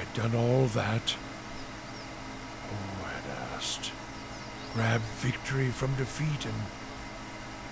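A man speaks in short bursts, close to a microphone.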